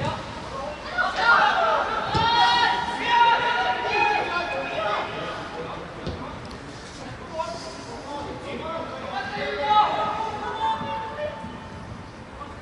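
Young men shout to each other across an open playing field.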